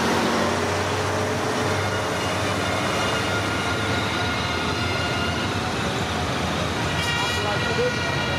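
Motorcycle engines hum as a convoy of motorcycles rides past.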